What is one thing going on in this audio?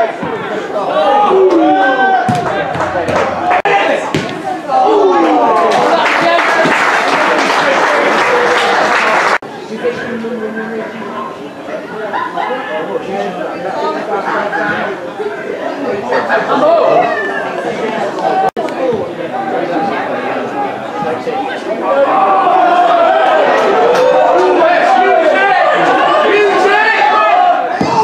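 A crowd of spectators shouts and chants loudly outdoors.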